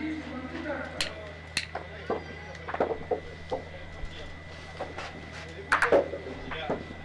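Metal boules clack sharply against each other.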